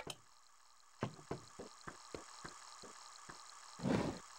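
Soft footsteps tap in a quick, even rhythm.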